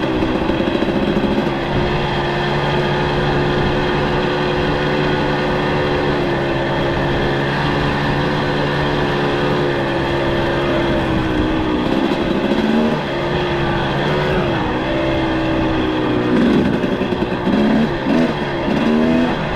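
A motorcycle engine drones steadily, then rises and falls in pitch.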